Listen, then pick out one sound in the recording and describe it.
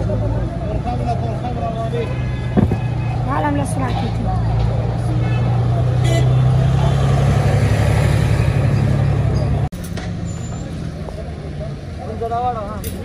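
A busy street hums with traffic and crowd noise outdoors.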